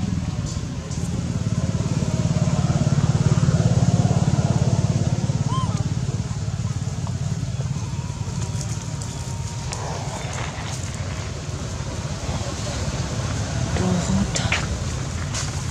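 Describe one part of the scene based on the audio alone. Dry leaves rustle and crunch under a monkey's feet.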